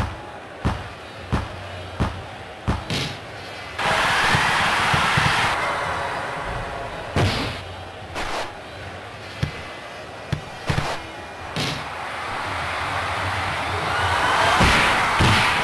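A ball is kicked with sharp thuds, again and again.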